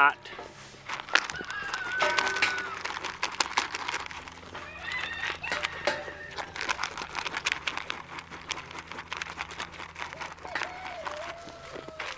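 Sheep munch and crunch feed.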